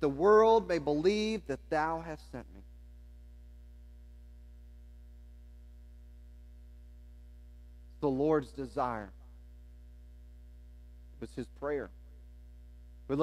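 A man speaks to an audience through a microphone, with long pauses.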